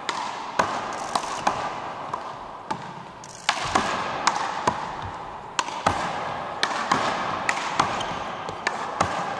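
Players' feet shuffle and thud on a wooden floor.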